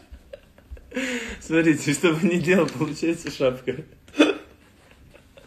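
A young man laughs loudly close to a phone microphone.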